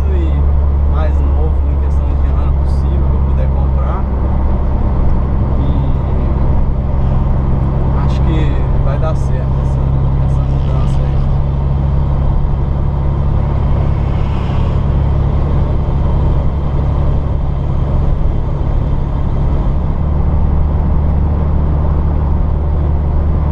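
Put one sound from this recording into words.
A car engine drones steadily, heard from inside the cabin.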